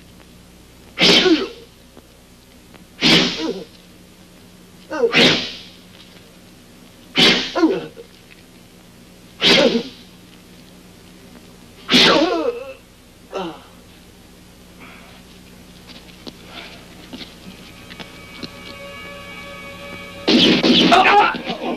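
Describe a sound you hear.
A man cries out in pain again and again, close by.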